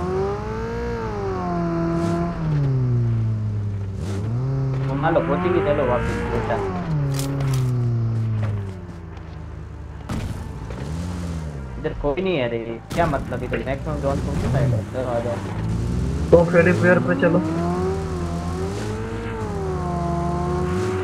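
A vehicle engine drones and revs up and down.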